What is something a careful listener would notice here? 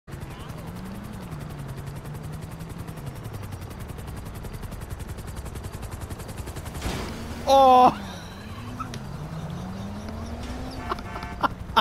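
A helicopter's rotor drones overhead.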